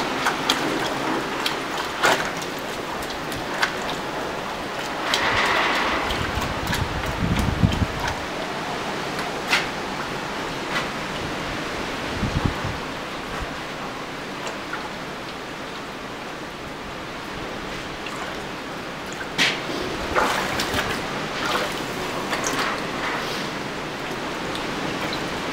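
Water sloshes and splashes in a bucket as it is stirred.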